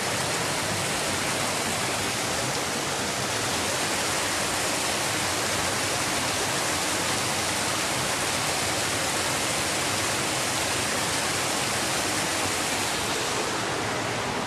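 A thin waterfall splashes steadily onto rocks.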